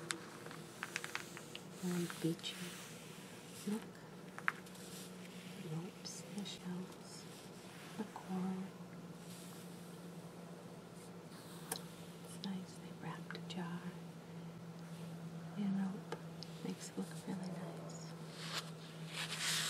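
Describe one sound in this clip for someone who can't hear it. Fingertips rub and brush across glossy magazine pages.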